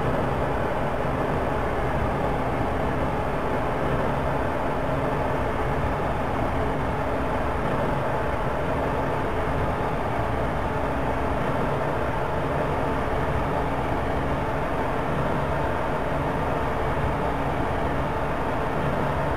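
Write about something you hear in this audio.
A train rumbles steadily through a tunnel.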